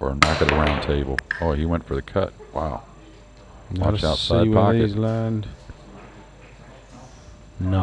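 Pool balls knock together and roll across the table.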